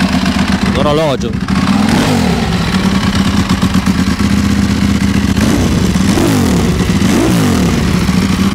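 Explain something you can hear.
A motorcycle engine revs sharply several times.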